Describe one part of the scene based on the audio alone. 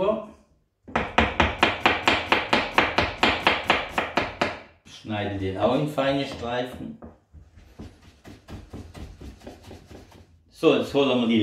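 A knife chops quickly on a cutting board.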